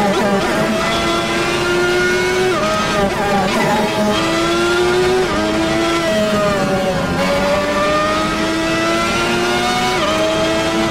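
A racing car engine screams at high revs, rising and dropping sharply with each gear change.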